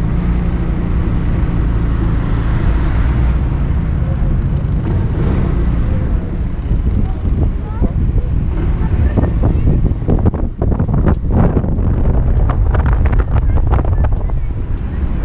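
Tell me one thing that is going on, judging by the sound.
Wind buffets loudly against a helmet.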